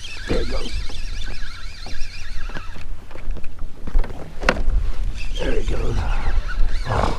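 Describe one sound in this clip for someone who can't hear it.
A fishing reel whirs and clicks as line is pulled out.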